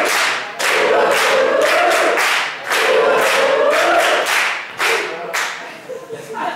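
Hands clap and slap sharply in a quick rhythm.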